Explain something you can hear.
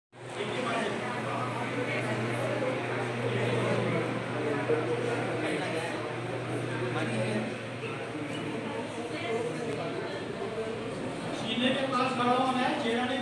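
A man speaks loudly to a group in a large echoing hall.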